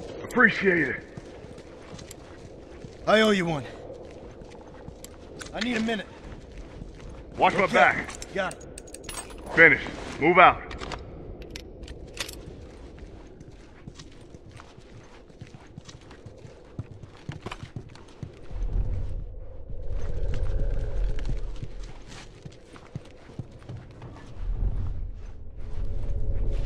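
Footsteps shuffle softly over a hard floor.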